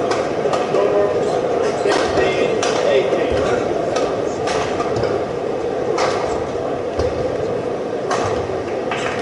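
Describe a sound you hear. A shuttlecock is struck sharply back and forth with rackets.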